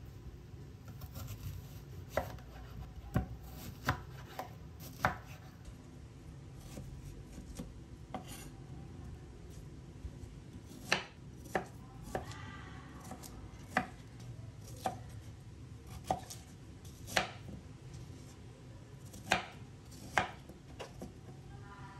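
A knife slices through crisp fruit.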